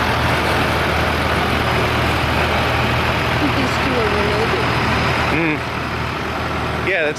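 Tractor engines rumble steadily nearby, outdoors.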